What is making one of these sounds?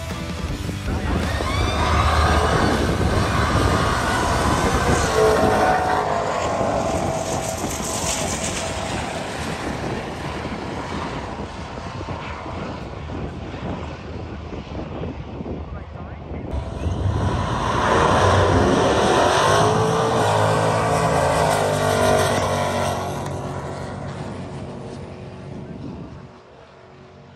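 Drag racing cars roar loudly down a track and fade into the distance.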